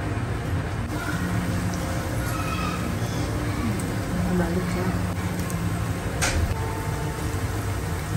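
A spatula scrapes against a pan.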